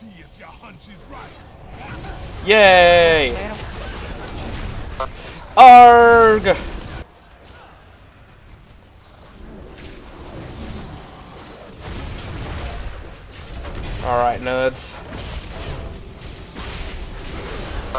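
Magic spells crackle and whoosh during a fight.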